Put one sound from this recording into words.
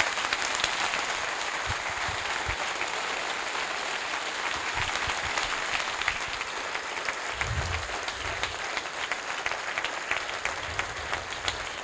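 A large crowd applauds steadily in a big hall.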